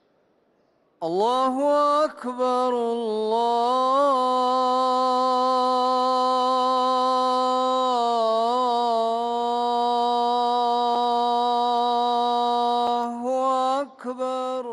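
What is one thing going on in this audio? A man chants a long, drawn-out call through loudspeakers, echoing in a large hall.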